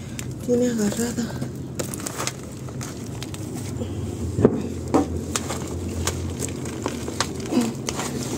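Dry leaves rustle and crackle as a hand pushes through a potted plant.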